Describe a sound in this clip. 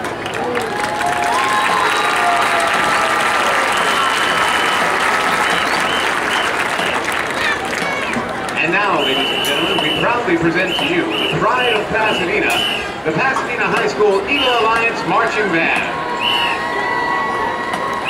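A large crowd cheers and shouts in an open stadium.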